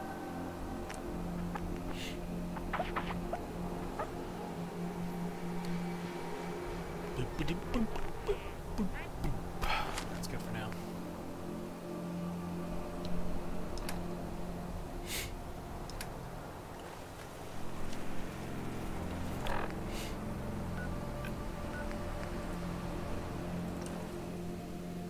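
Short electronic menu clicks and beeps sound now and then.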